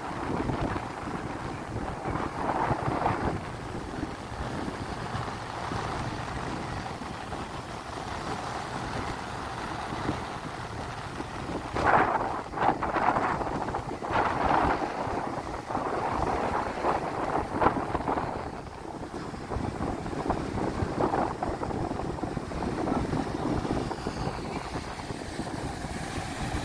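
Wind gusts loudly across the beach.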